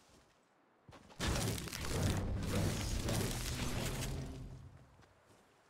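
A pickaxe strikes stone with hard knocks.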